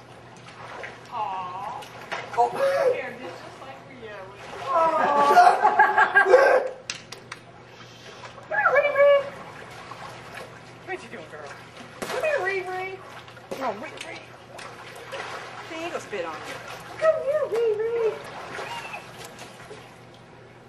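Children shout and laugh nearby.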